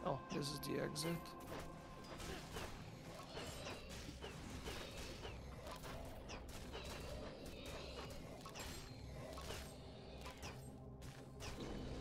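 Magic spells crackle and zap in quick bursts.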